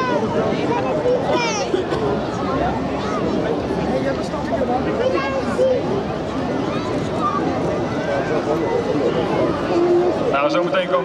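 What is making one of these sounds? A large outdoor crowd chatters and murmurs nearby.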